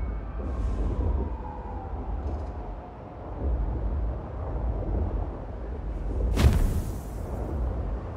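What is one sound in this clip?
A city hums with distant traffic.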